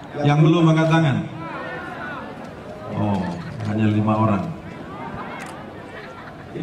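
A man speaks loudly and slowly into a microphone, heard through loudspeakers outdoors with echo.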